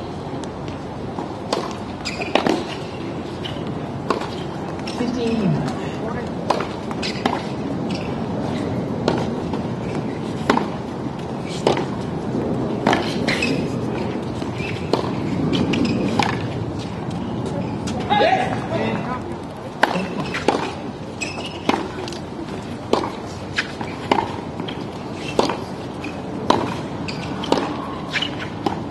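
Tennis shoes squeak and scuff on a hard court.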